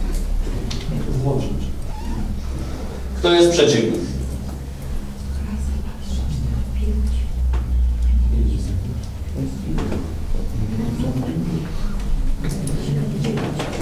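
Several men murmur and talk over one another nearby.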